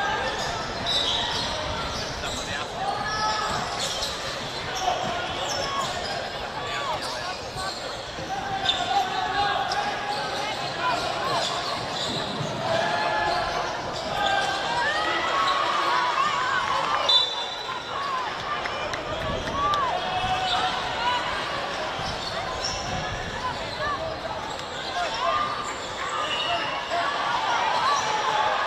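Young women shout and call to each other across an open outdoor field.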